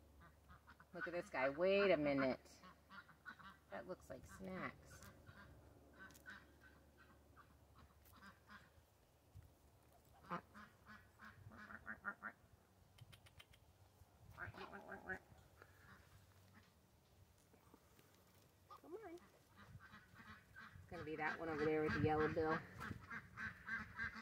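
Ducks quack loudly close by.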